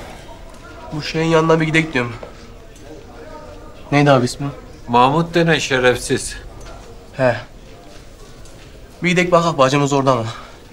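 A young man speaks with emotion, close by.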